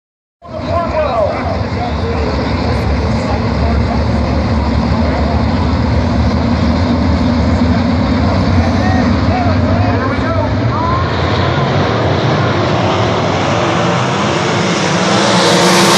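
Race car engines roar loudly around a dirt track outdoors.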